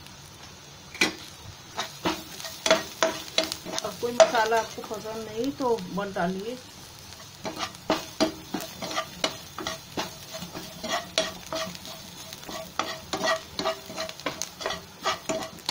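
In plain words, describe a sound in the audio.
A metal spatula scrapes and taps against a pan, stirring onions.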